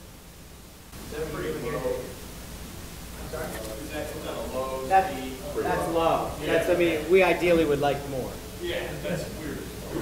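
A man speaks to an audience through a microphone.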